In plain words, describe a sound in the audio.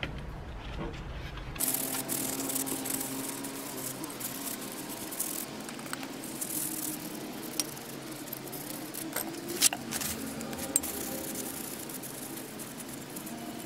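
A paper towel rubs and squeaks against a metal part.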